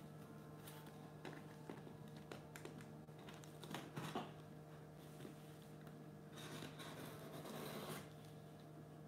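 Pieces of board rustle and scrape as they are moved.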